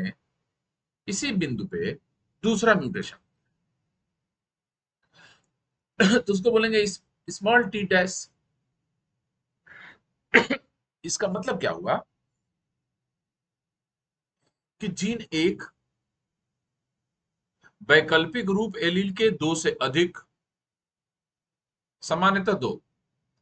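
A man speaks calmly and closely into a microphone, explaining in short bursts with pauses.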